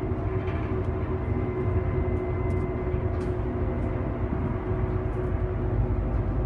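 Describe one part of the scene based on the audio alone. The bus interior rattles softly with small knocks.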